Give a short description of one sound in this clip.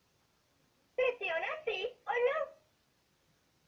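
A talking toy doll speaks in a bright, recorded girl's voice close by.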